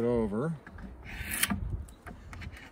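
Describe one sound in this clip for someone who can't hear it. A drawknife scrapes along wood.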